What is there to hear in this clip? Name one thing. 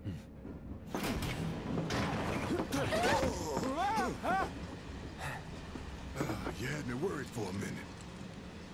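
A man speaks gruffly.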